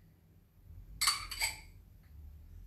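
Pieces of food drop into a frying pan.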